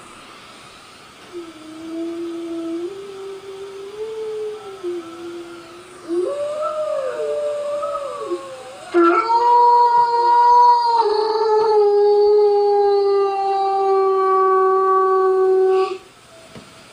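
A large dog howls close by in long, wavering cries.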